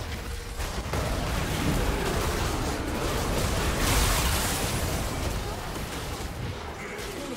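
Magic spell effects blast and crackle in a chaotic battle.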